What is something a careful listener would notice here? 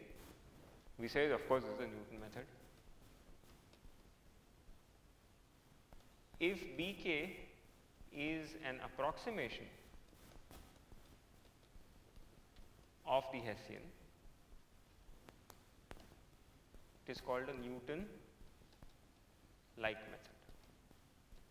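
A man speaks calmly and slowly in short phrases, close to a microphone.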